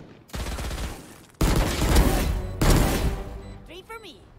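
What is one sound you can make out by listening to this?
Gunfire bursts out in quick rapid shots.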